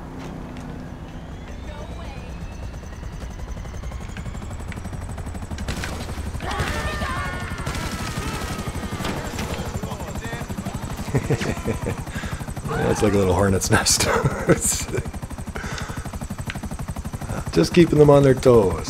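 A helicopter's rotor blades chop steadily overhead.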